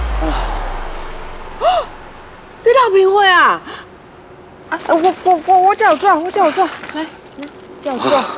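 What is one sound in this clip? A young woman speaks with concern close by.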